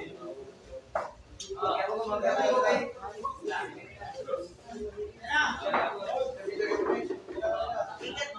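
Young men chatter and call out loudly nearby.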